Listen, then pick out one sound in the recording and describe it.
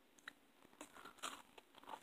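A young girl eats with crunching and chewing sounds close to the microphone.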